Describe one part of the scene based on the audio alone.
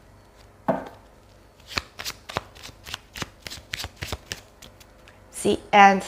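Cards are shuffled with quick soft flicks.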